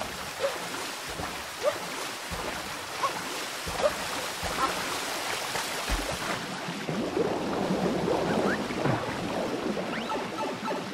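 Water splashes and gurgles.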